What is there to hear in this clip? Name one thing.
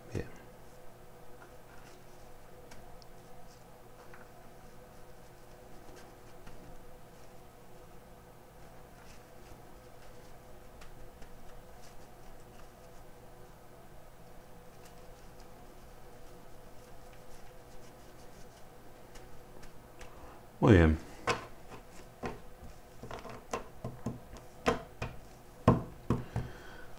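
Plastic cards rustle and click as a hand shuffles them close by.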